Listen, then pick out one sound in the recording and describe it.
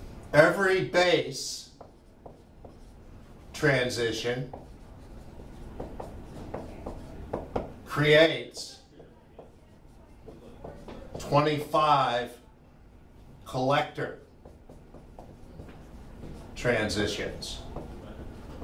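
An elderly man lectures calmly in short phrases with pauses.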